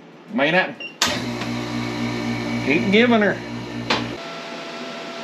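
A vacuum machine hums steadily with a low drone.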